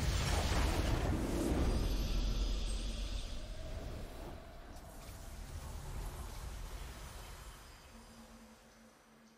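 A triumphant victory fanfare swells and then slowly fades.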